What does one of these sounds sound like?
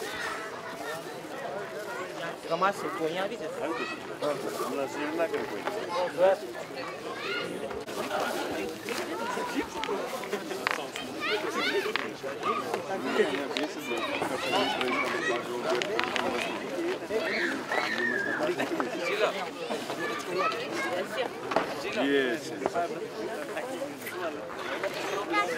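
A crowd of men and boys chatter all around in a large echoing room.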